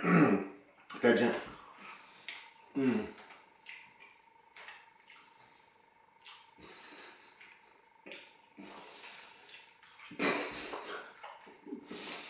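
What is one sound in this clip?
A man slurps noodles.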